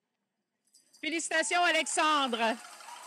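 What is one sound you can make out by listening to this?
A woman speaks loudly through a loudspeaker in a large hall.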